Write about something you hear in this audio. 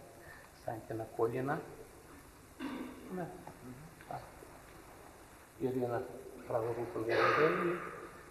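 An elderly man speaks calmly in a low voice, in an echoing hall.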